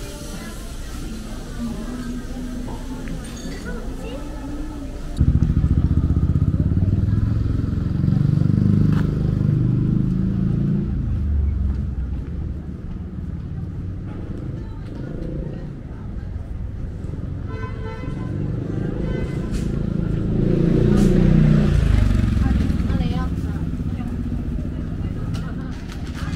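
Footsteps pass by on a paved street.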